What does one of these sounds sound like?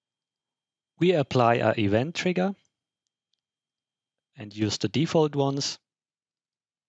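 A young man speaks calmly into a close headset microphone.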